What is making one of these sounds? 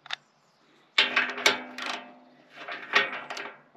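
A wrench ratchets on a bolt.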